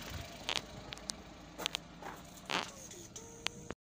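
A car door shuts with a thud.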